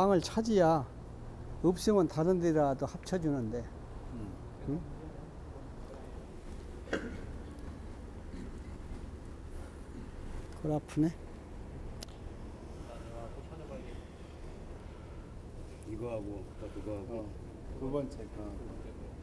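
An elderly man speaks calmly into a clip-on microphone.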